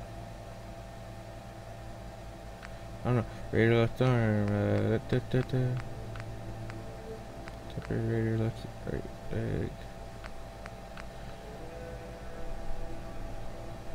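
A game menu clicks softly as selections move.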